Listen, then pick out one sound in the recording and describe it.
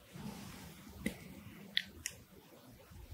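Chopsticks click softly against food.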